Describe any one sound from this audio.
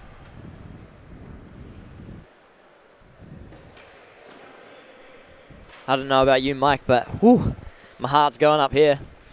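Ice skates scrape faintly on an ice rink in a large echoing arena.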